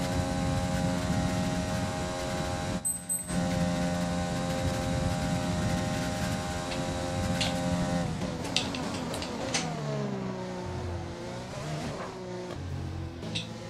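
A racing car engine whines at high revs, then drops in pitch as the car brakes and shifts down.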